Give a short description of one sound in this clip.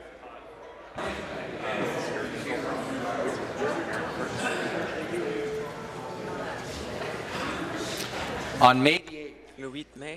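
Many people murmur and call out together in a large hall.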